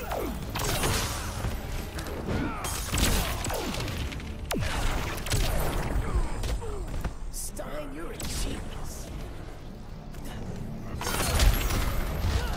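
Energy blasts whoosh and burst with a loud rumble.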